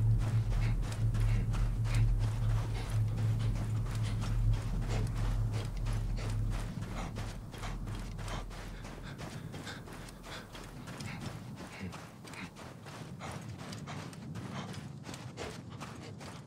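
Footsteps pad quickly through soft sand.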